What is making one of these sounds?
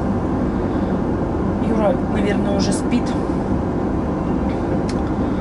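A steady low roar fills the background.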